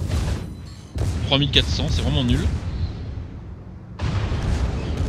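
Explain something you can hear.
Heavy ship guns fire with loud rumbling blasts.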